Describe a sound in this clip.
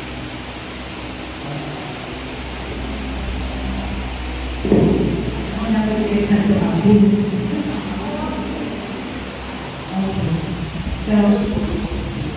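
A woman speaks through a microphone in an echoing room.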